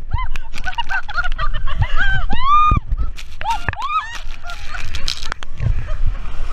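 Women scream with delight close by.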